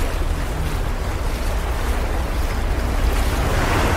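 Small waves break and wash over rocks.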